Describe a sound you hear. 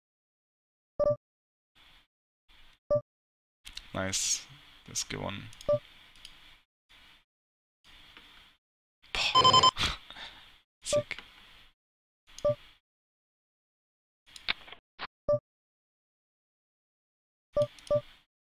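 Short electronic chimes ring out from a card game.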